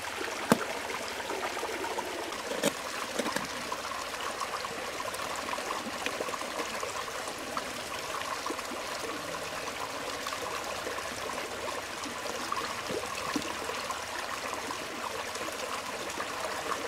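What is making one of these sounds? A hard shell scrapes and knocks against stone.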